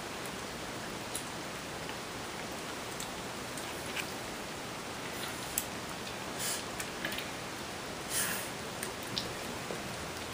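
Cats lap and chew food with small wet clicks.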